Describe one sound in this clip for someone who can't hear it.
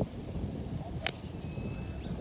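A golf club splashes a ball out of sand with a dull thud.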